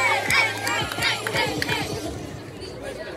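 A crowd of young people chatters and calls out outdoors.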